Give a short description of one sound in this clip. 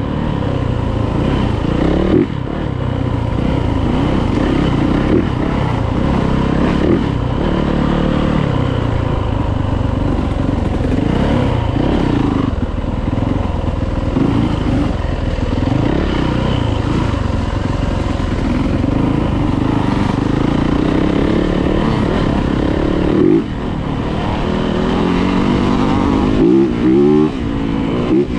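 A dirt bike engine revs and drones up close, rising and falling as it shifts.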